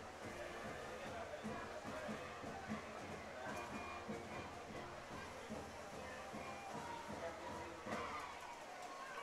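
A crowd murmurs and calls out from the stands outdoors.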